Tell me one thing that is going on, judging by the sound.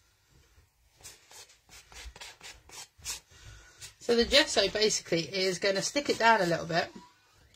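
A palette knife scrapes across paper.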